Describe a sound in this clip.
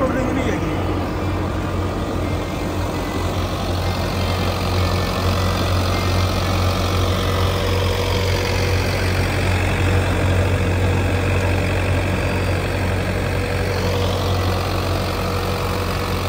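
A rotary tiller churns through dry soil.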